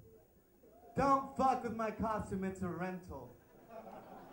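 A young man raps loudly into a microphone through loudspeakers.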